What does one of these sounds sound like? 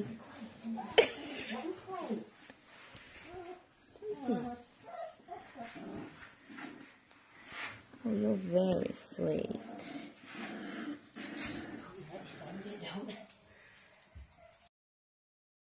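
A puppy whines and whimpers close by.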